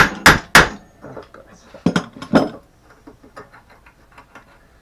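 Metal parts clink and rattle as they are handled.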